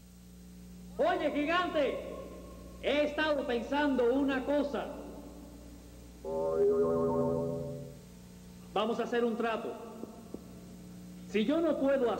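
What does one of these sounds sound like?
A man speaks dramatically in a theatrical voice, close by.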